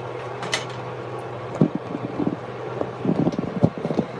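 A metal pot lid clinks and clatters against a pot.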